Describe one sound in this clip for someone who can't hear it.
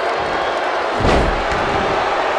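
A body slams hard onto a wrestling mat with a heavy thud.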